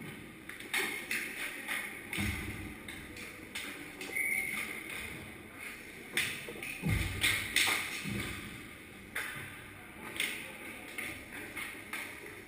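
Ice skates scrape and carve across an ice rink, echoing in a large hall.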